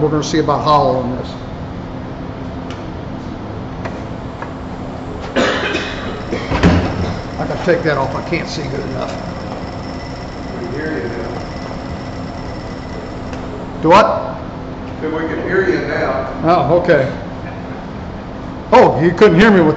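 A wood lathe motor hums steadily as it spins, then winds down.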